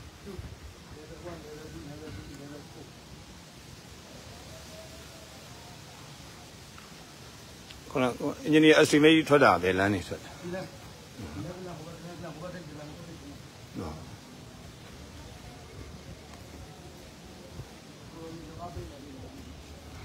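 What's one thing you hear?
An adult man speaks calmly outdoors.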